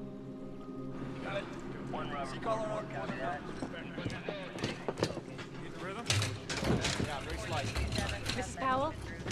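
Men talk urgently nearby.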